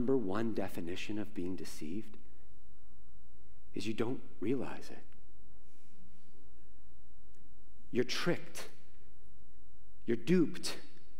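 A man speaks with animation through a microphone, with pauses, in a room with some echo.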